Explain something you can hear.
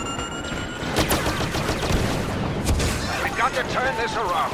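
Blaster shots fire in quick bursts.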